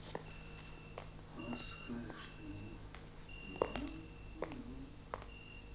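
Footsteps walk slowly away on a hard floor.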